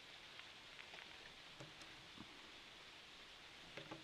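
A knife scrapes shavings from a stick of wood.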